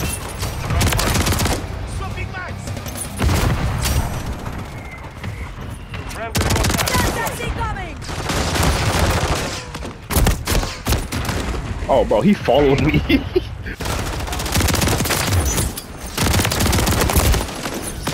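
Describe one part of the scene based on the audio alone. Rapid gunfire bursts out in loud, short volleys.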